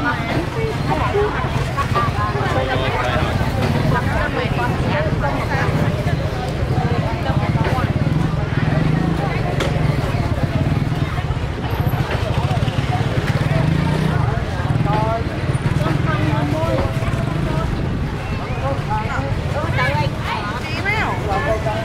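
Several women chatter and talk over one another close by.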